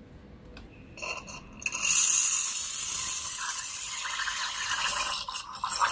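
An espresso machine steam wand hisses and bubbles into a jug of water.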